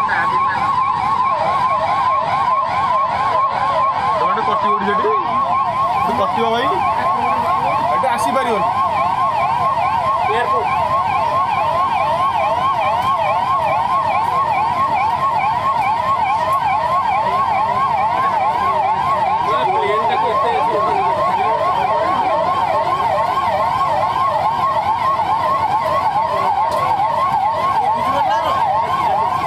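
A police siren wails rapidly and steadily close by.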